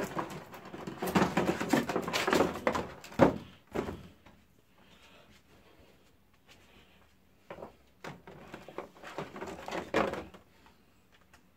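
Stiff plastic packaging crinkles and rustles as hands handle it.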